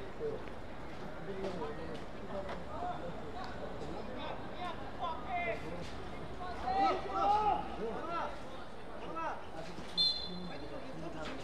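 Young men shout and call out to each other across an open outdoor field.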